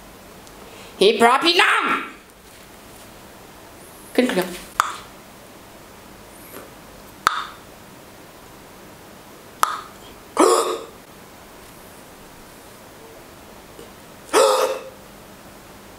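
A young man calls out short, lively phrases close by, with pauses between them.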